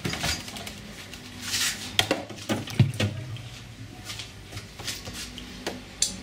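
A glass dish clinks onto a shelf.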